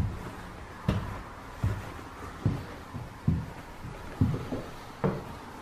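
Footsteps thud steadily down wooden stairs.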